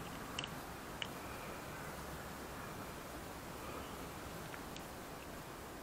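Plastic parts click as a car door handle cover is pried off with a screwdriver.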